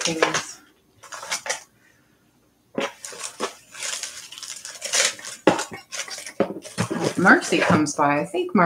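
Small metal trinkets clink and rattle in a cardboard box.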